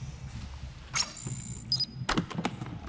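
An electronic lock beeps as a button is pressed.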